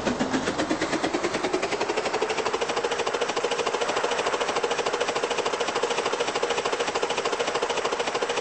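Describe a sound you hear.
A steam locomotive chuffs rapidly and steadily as it runs along the track.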